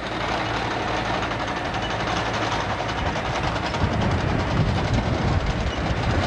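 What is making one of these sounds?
A jet airliner roars low overhead on its approach, growing louder.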